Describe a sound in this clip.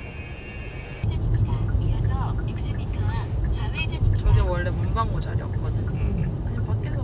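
A car engine hums while driving along a road.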